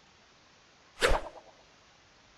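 A club strikes a ball with a sharp whack.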